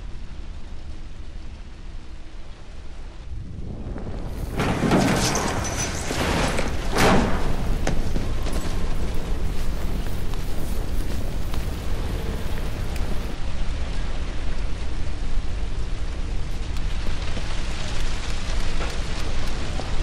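Fire roars and crackles nearby.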